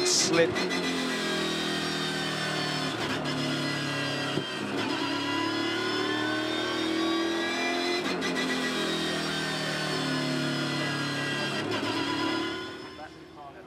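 A race car engine drones loudly close by, its pitch rising and falling.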